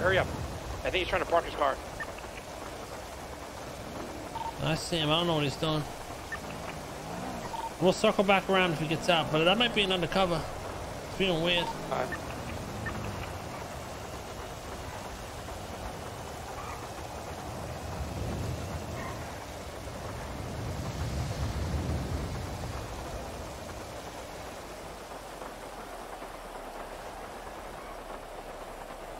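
A van engine hums as it drives.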